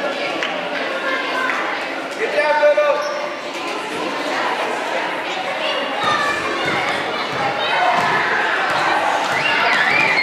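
Young girls chatter and call out excitedly in a large echoing gym.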